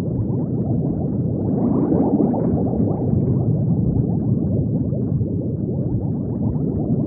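Bubbles gurgle and rise steadily underwater.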